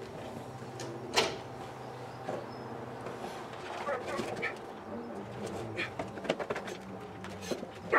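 Metal parts clank and knock on a car.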